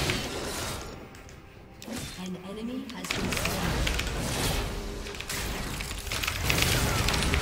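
Video game spells and hits crackle and clash.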